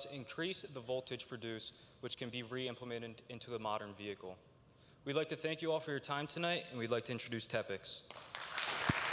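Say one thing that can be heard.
A young man speaks calmly through a microphone in a large echoing hall.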